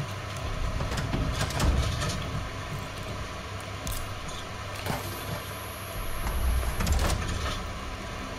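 Heavy metal parts clank and scrape as a mechanism is worked by hand.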